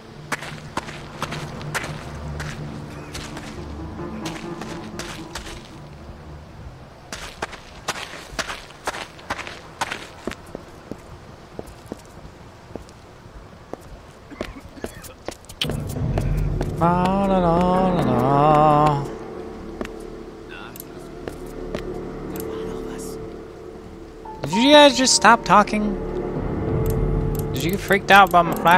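Footsteps tap steadily on cobblestones.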